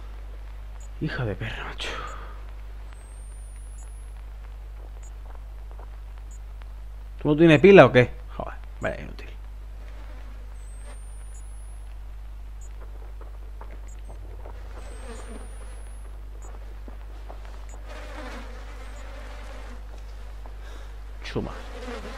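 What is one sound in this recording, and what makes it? A young man talks loudly with animation, close to a microphone.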